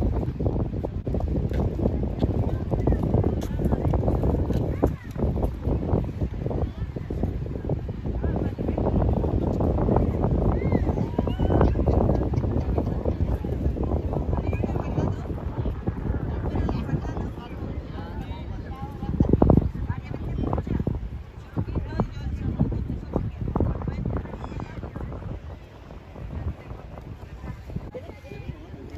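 A crowd of beachgoers chatters in the distance.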